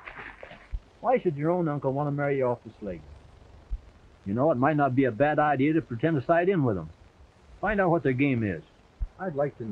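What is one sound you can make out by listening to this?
A man speaks calmly and earnestly, close by.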